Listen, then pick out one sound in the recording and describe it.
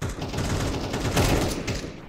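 A rifle fires in a short burst.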